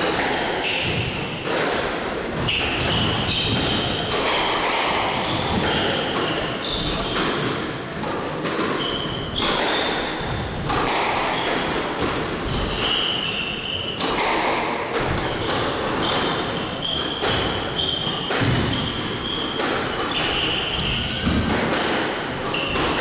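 A squash ball smacks against the walls and rackets in quick, sharp knocks, echoing in a hard-walled court.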